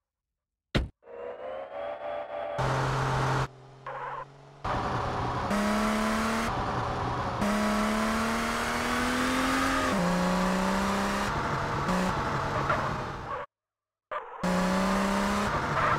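A car engine starts and revs, rising and falling in pitch as the car drives off.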